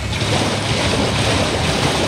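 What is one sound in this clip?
Hooves splash through shallow water.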